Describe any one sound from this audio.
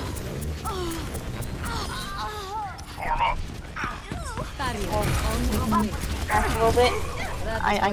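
An energy beam weapon fires with a buzzing zap.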